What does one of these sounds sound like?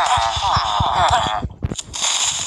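A game villager makes a low nasal grunt.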